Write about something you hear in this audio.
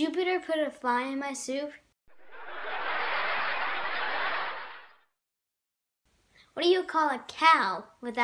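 A young boy speaks cheerfully and close up.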